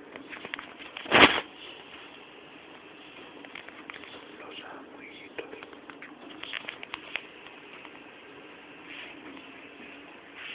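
A man speaks quietly, close to a phone's microphone.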